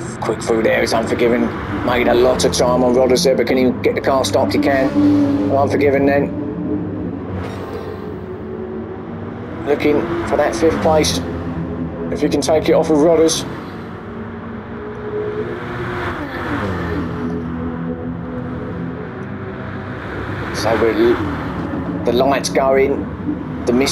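A racing car engine roars, revving high and dropping as it shifts gears.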